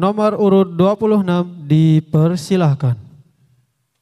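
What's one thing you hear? A young boy chants in a melodic voice.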